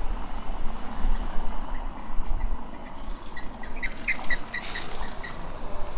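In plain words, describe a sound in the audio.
A car rolls slowly past over cobblestones.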